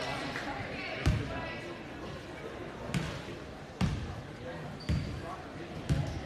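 A basketball bounces on a wooden floor with loud, echoing thumps.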